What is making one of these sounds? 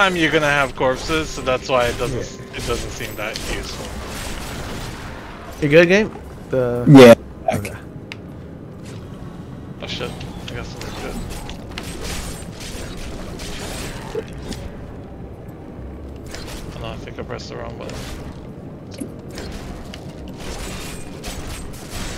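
Swords clash and magic blasts crackle in a fight.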